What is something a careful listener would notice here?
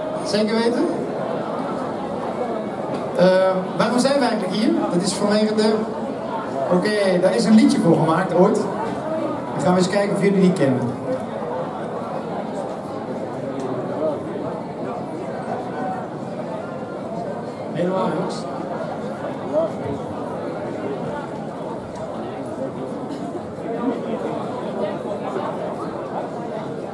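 A large crowd chatters outdoors.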